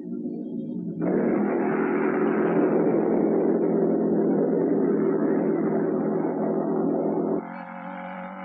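Motorcycle engines roar loudly as the motorcycles speed along.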